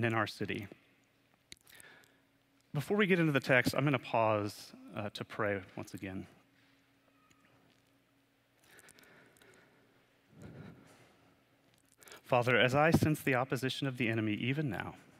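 A young man speaks calmly into a microphone, pausing between phrases.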